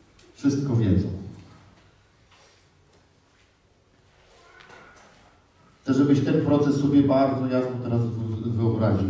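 A man speaks with animation into a microphone in a large echoing hall.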